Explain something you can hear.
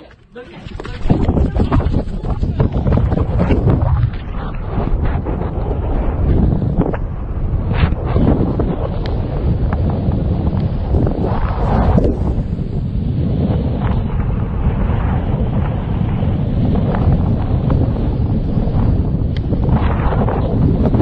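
Wind rushes loudly past a bird in flight.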